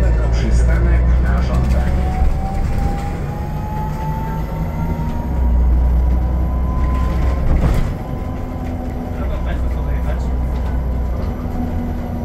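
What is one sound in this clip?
A bus engine rumbles low as the bus drives along a street.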